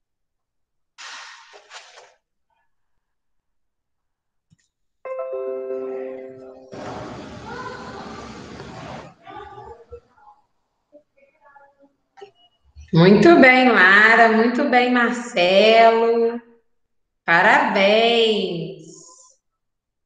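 A young woman speaks calmly into a microphone, heard over an online call.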